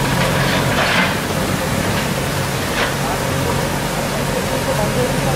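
A stream of water rushes over rocks.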